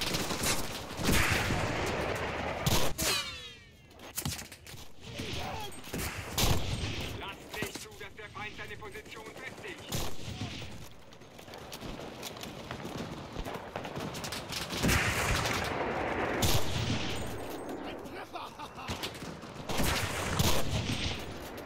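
A rifle fires in loud sharp shots.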